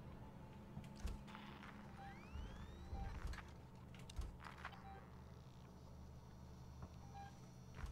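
A handheld motion tracker beeps softly.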